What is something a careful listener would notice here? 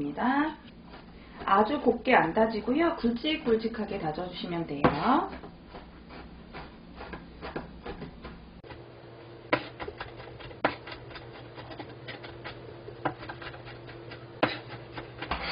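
A cleaver chops and taps against a cutting board.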